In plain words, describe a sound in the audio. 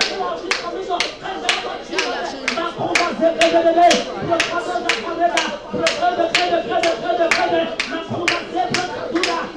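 A woman sings loudly through a microphone and loudspeakers.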